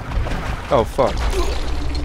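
A rifle fires a shot.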